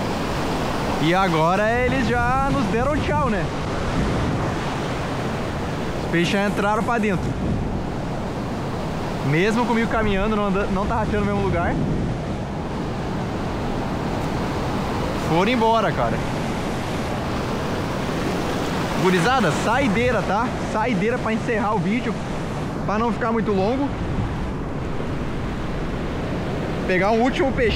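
A man talks with animation close by, outdoors over the surf.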